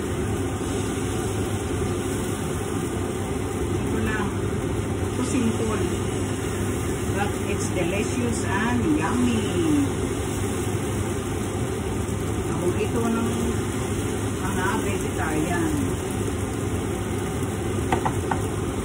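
Pancakes sizzle steadily in hot pans.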